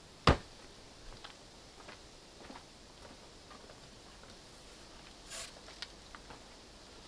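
Footsteps crunch on dry soil.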